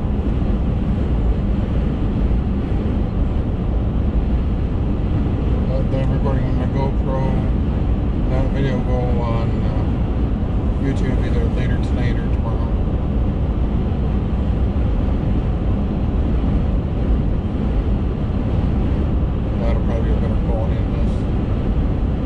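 A car engine hums and tyres roar steadily on the road from inside the car.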